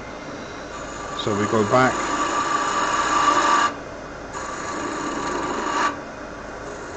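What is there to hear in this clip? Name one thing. A gouge scrapes and shaves spinning wood.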